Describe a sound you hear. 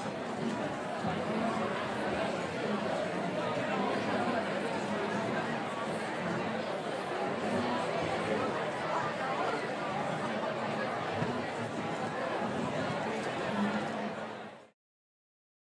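A large crowd chatters loudly in an echoing hall.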